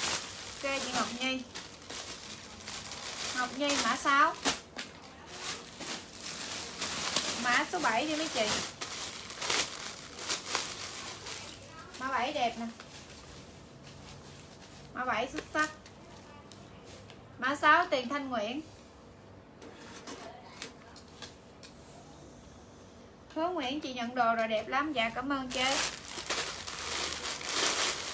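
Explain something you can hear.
Plastic wrapping rustles and crinkles as clothes are handled.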